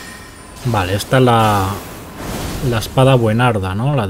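A magic beam roars and crackles.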